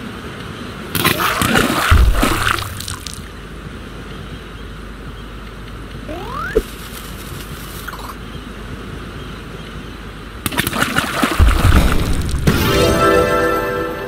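A game explosion bursts loudly.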